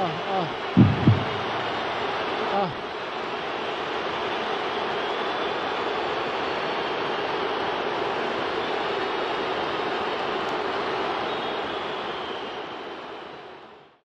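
A large stadium crowd roars steadily and slowly fades away.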